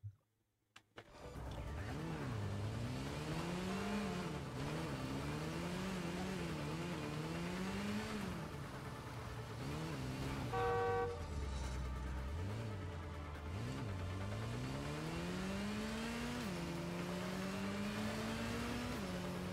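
A motorcycle engine revs up and down as it speeds along.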